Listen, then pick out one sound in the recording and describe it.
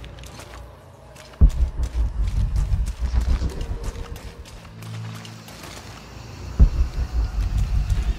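Footsteps crunch through leaves and undergrowth.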